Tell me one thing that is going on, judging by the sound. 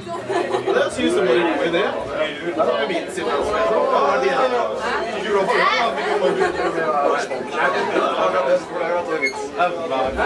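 An electric guitar plays loudly through amplifiers.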